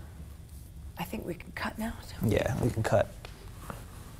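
A woman speaks briefly.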